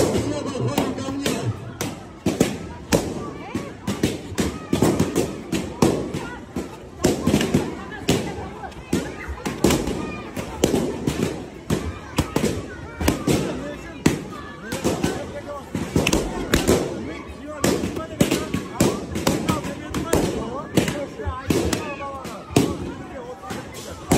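Children shout and squeal excitedly nearby.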